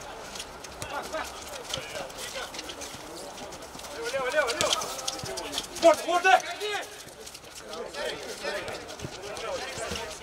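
Men shout to each other across an outdoor pitch.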